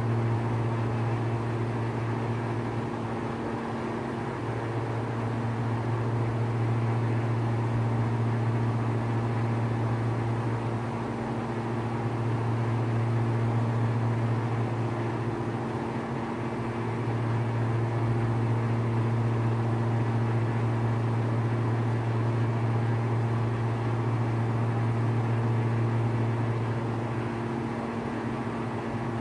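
A propeller engine drones steadily, heard from close inside.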